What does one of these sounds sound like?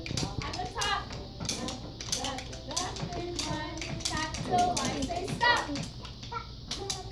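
Young children tap wooden sticks together in rhythm.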